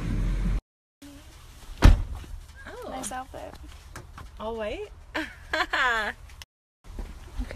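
Young women talk and laugh with animation close by.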